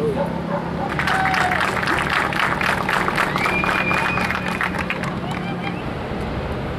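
A group of players claps their hands in applause.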